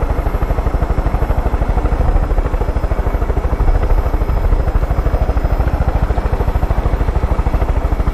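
Helicopter rotor blades thump rapidly and steadily.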